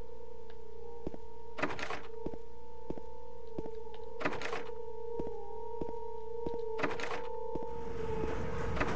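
Footsteps tread slowly and evenly on a hard floor.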